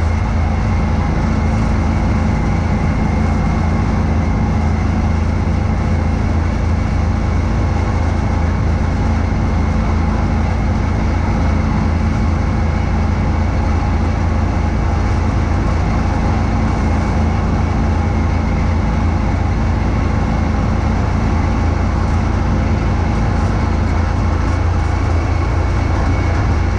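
Snow whooshes and sprays from a snowblower's chute.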